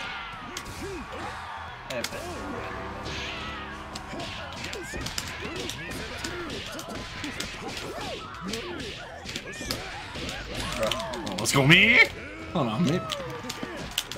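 Fighting game punches and kicks land with sharp smacks.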